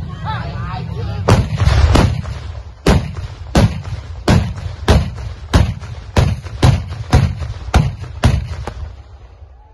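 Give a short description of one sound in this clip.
Cannons fire one after another in a rapid series of loud booming blasts.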